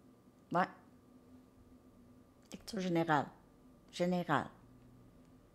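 A woman speaks with animation, close to the microphone.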